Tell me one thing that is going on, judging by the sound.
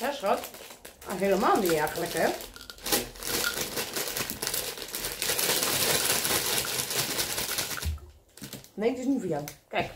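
A plastic wrapper crinkles in a woman's hands.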